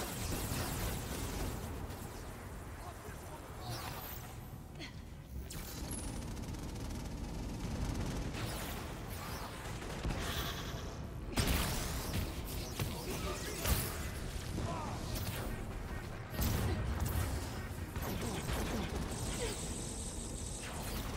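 Crackling energy blasts fire and burst with loud booms.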